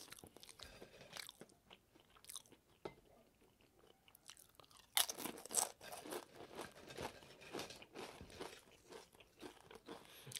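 A young man chews crunchy food loudly and close up.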